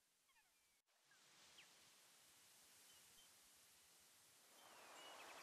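Waves wash softly onto a shore.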